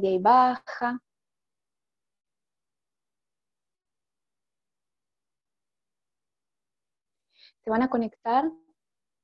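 A middle-aged woman speaks calmly over an online call, with long pauses.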